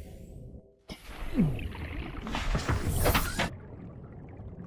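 A loud roaring burst hits a submarine's hull.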